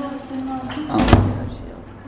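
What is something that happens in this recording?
A door bangs shut nearby.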